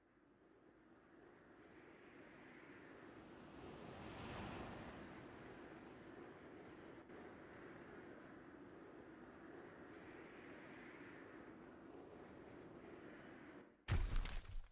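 Wind rushes steadily and swells as a figure falls through the air.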